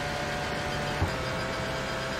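A racing car's gearbox shifts up with a sharp clunk.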